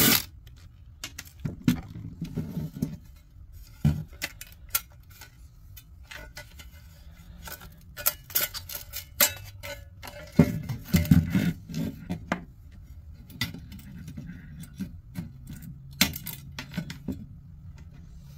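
Metal parts of a casing clatter and knock as they are handled.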